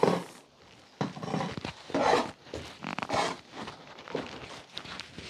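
A spoon scrapes through grain in a metal basin.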